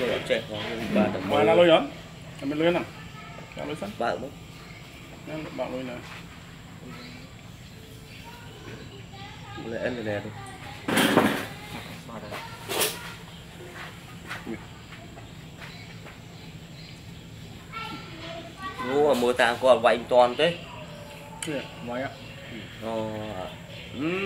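Men talk casually close by.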